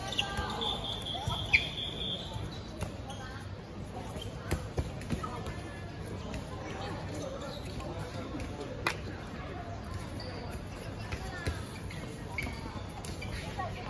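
Sneakers squeak on a hard court.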